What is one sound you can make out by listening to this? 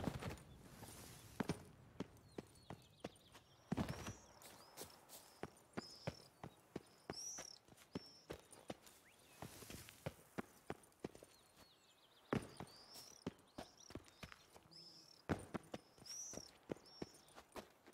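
Footsteps patter quickly on stone and dirt.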